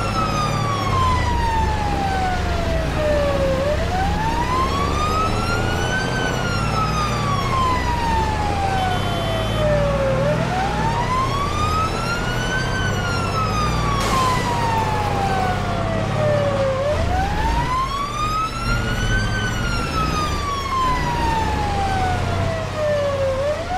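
A siren wails, slowly rising and falling in pitch.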